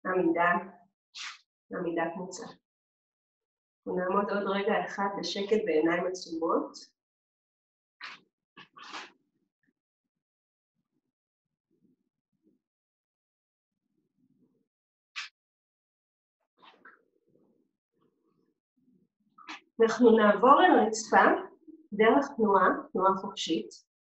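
A woman speaks calmly and clearly, close by, with pauses.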